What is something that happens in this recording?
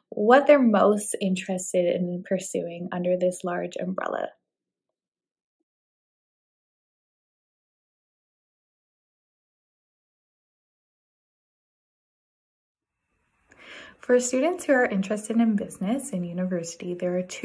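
A woman speaks calmly through a microphone, with a long pause in the middle.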